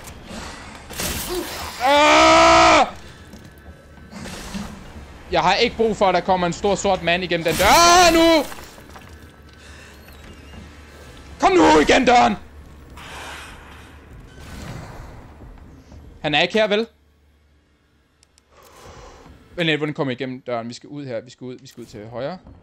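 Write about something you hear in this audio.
A man talks with animation into a close microphone, now and then shouting.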